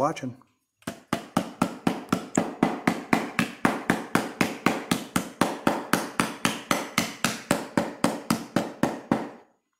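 A hammer taps rapidly and steadily on thin sheet metal.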